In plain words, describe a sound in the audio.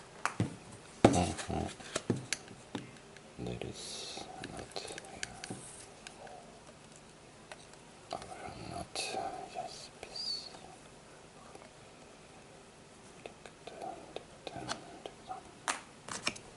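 Cord and yarn rustle and tap as hands wind them around a cardboard tube.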